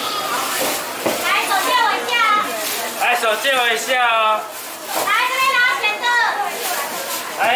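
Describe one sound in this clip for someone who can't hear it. A man calls out loudly to customers.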